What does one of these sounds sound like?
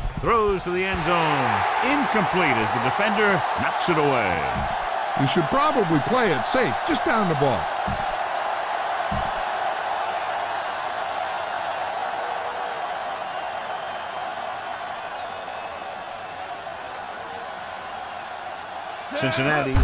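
A large crowd cheers and roars in a stadium, slowly fading.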